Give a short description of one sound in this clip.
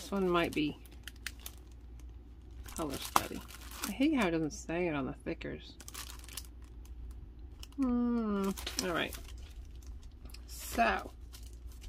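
Plastic packages crinkle and rustle as a hand flips through them.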